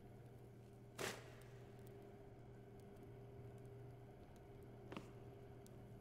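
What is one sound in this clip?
A wooden door bumps and clatters.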